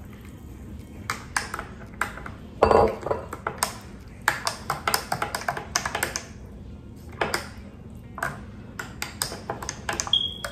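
Small objects clink and tap as they are handled.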